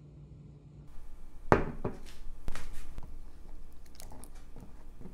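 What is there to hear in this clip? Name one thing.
A spatula stirs nuts in water in a glass bowl.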